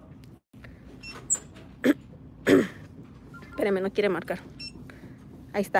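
A scanner beeps.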